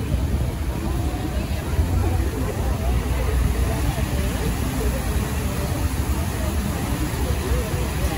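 A fountain's water splashes and trickles.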